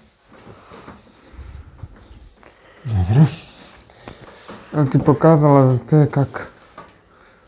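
Fabric rustles softly nearby.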